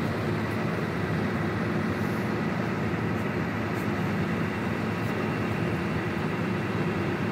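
Wind blows outdoors across the water.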